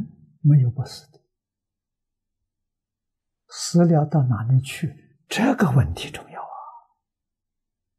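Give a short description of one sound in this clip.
An elderly man speaks calmly and close to a microphone, in short phrases with pauses.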